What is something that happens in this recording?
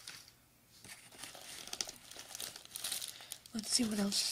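Paper packaging rustles as items inside are moved.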